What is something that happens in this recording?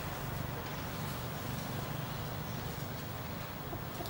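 Branches and leaves rustle as a monkey climbs through a tree.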